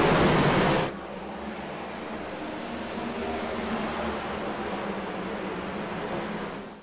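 Racing car engines drone steadily around a track.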